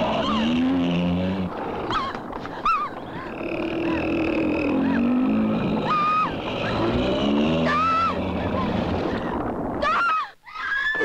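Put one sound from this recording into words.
A young woman cries out in panic, close by.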